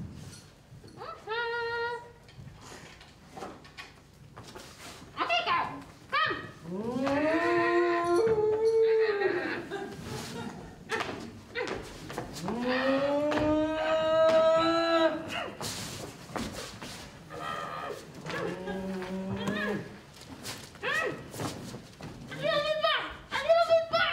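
A voice on stage wails and howls in long, sweeping rising and falling tones.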